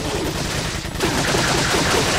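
A pistol fires a single loud shot.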